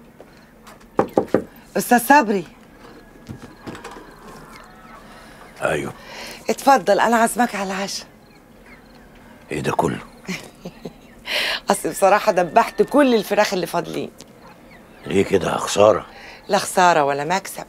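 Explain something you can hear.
A middle-aged woman calls out and talks with animation close by.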